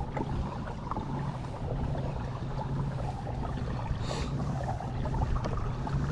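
A kayak's pedal drive whirs as it is pedalled.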